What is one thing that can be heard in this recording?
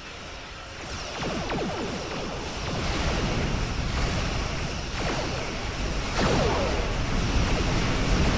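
Laser weapons fire in rapid zapping bursts.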